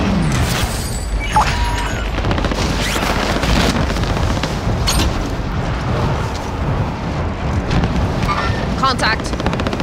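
Wind rushes loudly and steadily past a falling parachutist.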